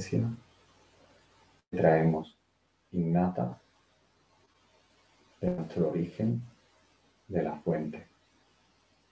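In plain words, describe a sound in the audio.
A young man speaks calmly in short phrases with pauses, heard through a webcam microphone.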